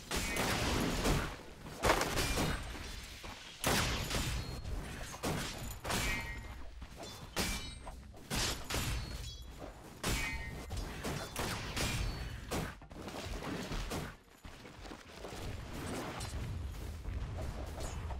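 Game spells and attacks crash and clang repeatedly.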